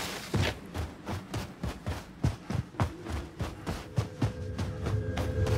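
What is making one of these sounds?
Footsteps crunch quickly and steadily on snow.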